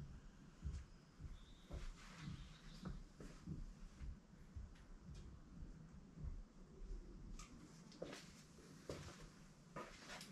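Footsteps shuffle on a hard floor close by.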